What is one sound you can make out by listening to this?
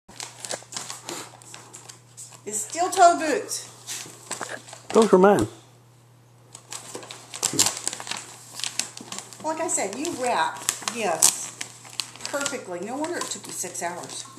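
Paper rustles and crinkles as a gift bag is opened.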